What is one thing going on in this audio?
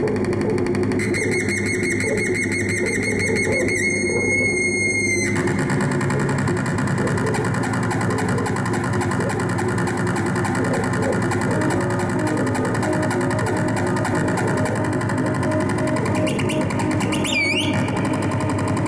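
A high whistling electronic tone sweeps up and down.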